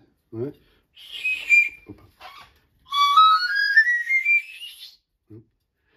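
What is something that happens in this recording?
A small whistle blows in rising, warbling notes.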